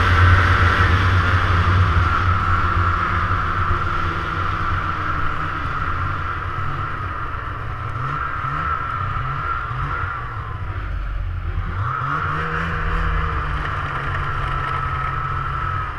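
A snowmobile engine roars steadily close by, its pitch rising and falling as it speeds up and slows.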